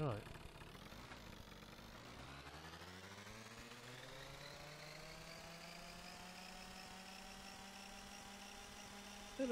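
A scooter engine revs up and rises in pitch as it speeds away.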